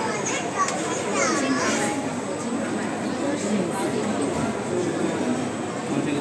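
Many people chatter in the background of a large echoing hall.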